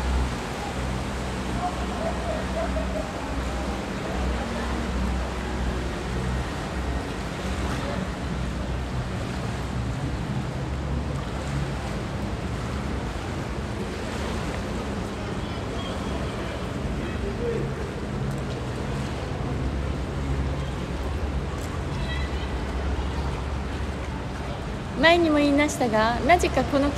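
A river's water churns and laps steadily nearby.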